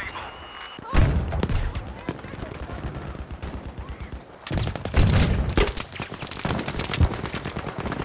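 Gunshots boom nearby.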